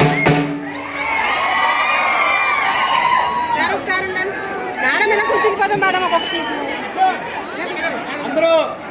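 Bamboo flutes play a wavering melody.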